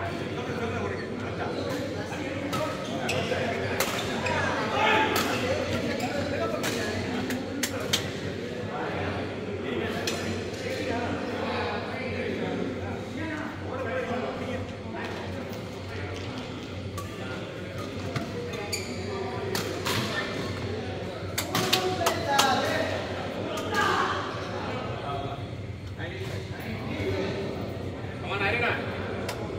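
Badminton rackets strike a shuttlecock with sharp pops, over and over.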